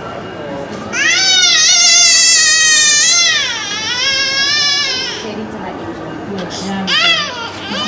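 A woman speaks softly to comfort a baby.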